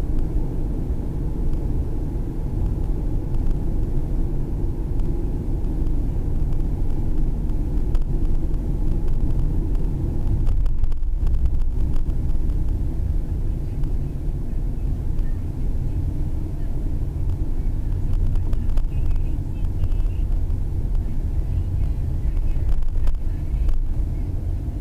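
A car drives along a road, its engine and road rumble heard from inside the car.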